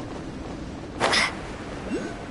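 A glider snaps open with a loud whoosh.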